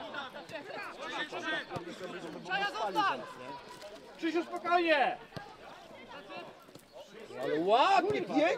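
Men shout loudly to each other outdoors.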